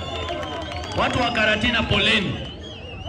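A crowd shouts and cheers.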